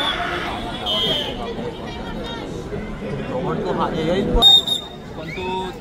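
A referee's whistle blows sharply a few times.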